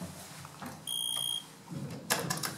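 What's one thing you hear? An elevator button beeps when pressed.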